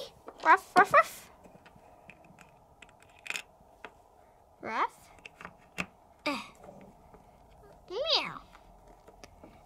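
Small plastic toys tap and click softly as they are handled.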